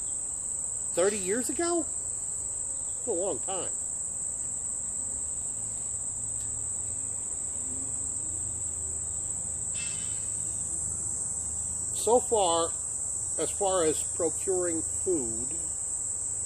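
A man speaks calmly and close by, in short bursts.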